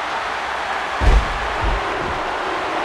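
A heavy body slams onto a wrestling ring mat with a deep thud.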